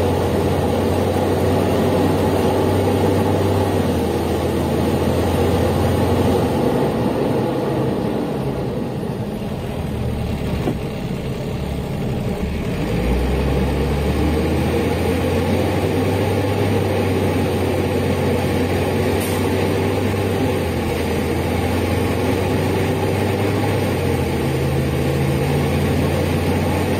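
The inline-six diesel engine of a city bus drones, heard from inside the bus, easing off and then pulling again.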